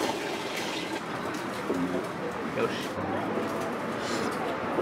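A person slurps noodles loudly up close.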